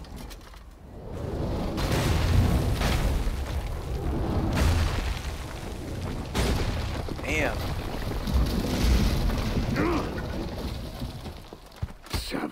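Explosions boom and rumble.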